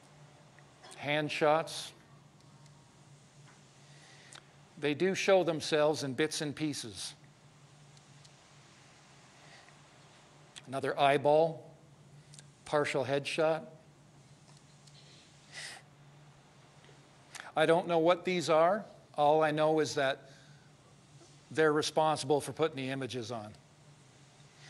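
A man speaks through a microphone in bursts with pauses, heard over loudspeakers in a large room.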